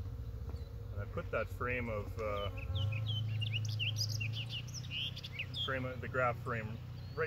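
A man speaks calmly nearby, slightly muffled.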